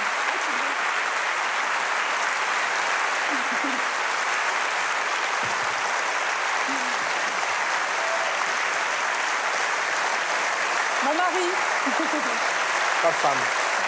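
A large audience applauds loudly and steadily in an echoing hall.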